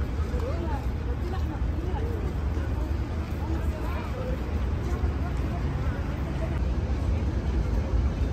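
Footsteps shuffle on stone paving.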